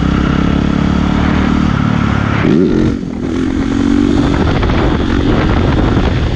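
A motorcycle engine roars close by, revving up and down.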